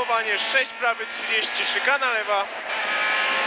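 A man reads out quickly and urgently over an intercom.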